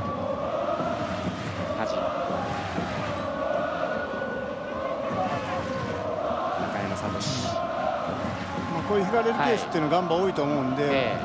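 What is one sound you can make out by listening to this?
A large stadium crowd chants and sings loudly and steadily.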